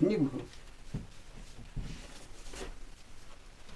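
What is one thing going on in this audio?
Cloth rustles as it is pulled off.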